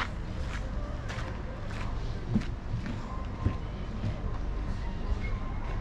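Footsteps crunch on a gravel path nearby.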